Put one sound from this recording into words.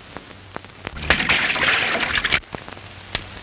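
Water splashes loudly as a man dives into a stream.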